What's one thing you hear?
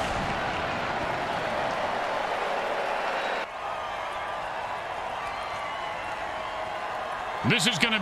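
A large crowd cheers and roars steadily in a stadium.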